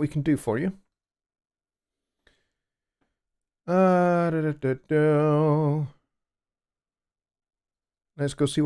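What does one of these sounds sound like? A man sings up close into a microphone, holding long notes.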